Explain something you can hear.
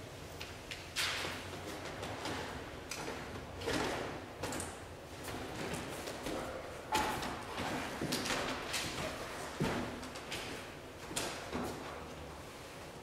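Footsteps shuffle across paper.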